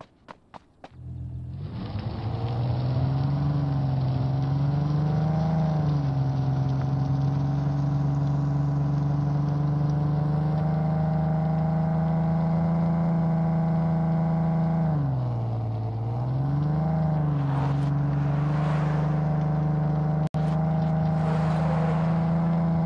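A car engine hums steadily, rising and falling in pitch as the car speeds up and slows down.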